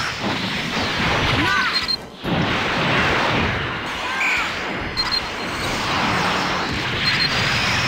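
Energy blasts whoosh and boom in a video game battle.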